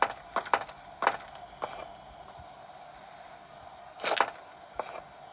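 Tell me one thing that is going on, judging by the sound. Fingers tap on a touchscreen.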